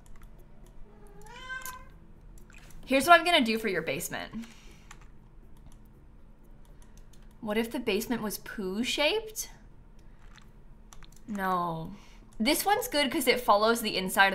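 A young woman talks animatedly into a close microphone, in bursts with pauses.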